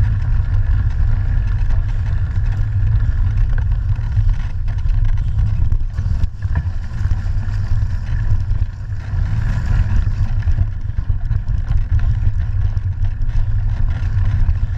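Wind rumbles steadily across a microphone on a moving bicycle.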